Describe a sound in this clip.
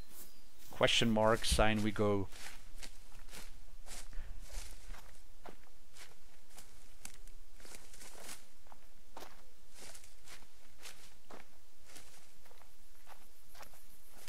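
Footsteps rustle through dry undergrowth.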